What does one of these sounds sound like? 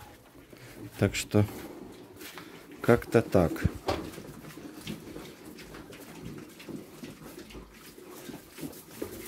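Piglets grunt and squeal in a pen.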